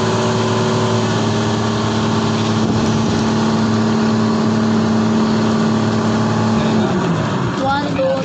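A boat engine drones steadily close by, then slows down.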